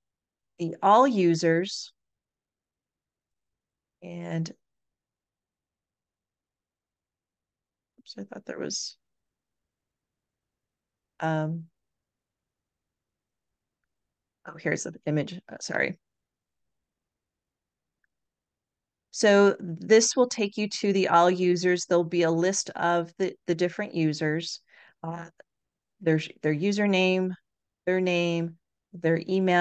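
An elderly woman speaks calmly into a microphone, in bursts with pauses.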